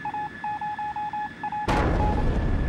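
A radio signal beeps in quick, even pulses.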